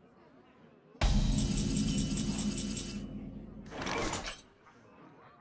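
A bright, ringing game fanfare sounds suddenly and slowly fades.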